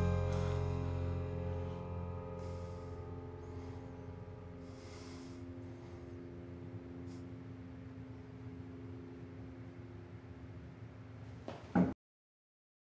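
A band's final chord rings out and slowly fades.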